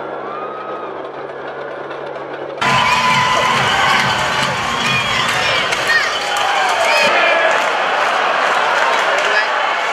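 A large crowd murmurs and cheers in a big echoing arena.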